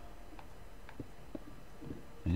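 A stone block breaks with a short crunch.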